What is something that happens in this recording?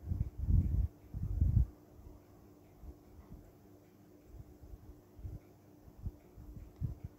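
A coloured pencil scratches softly across paper in quick strokes.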